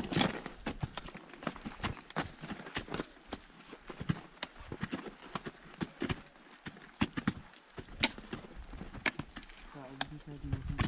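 Crampons and ice axes bite and scrape into ice in sharp repeated knocks.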